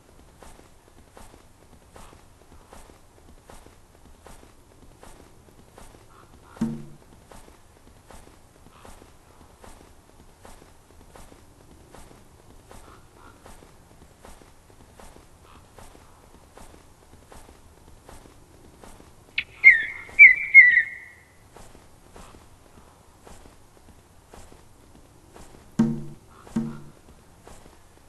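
A heavy animal shuffles across snow with soft, regular thuds.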